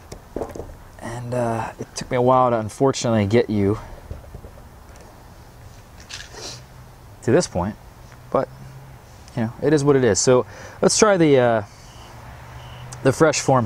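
A young man talks casually and close up into a clip-on microphone.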